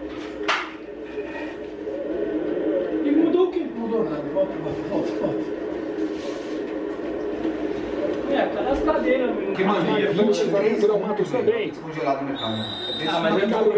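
Several young men talk with animation close by.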